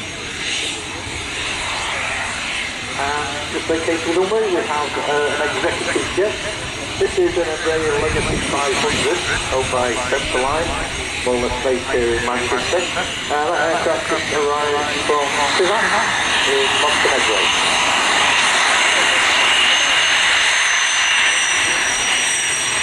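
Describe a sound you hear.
A jet engine whines steadily and grows louder as a plane taxis closer.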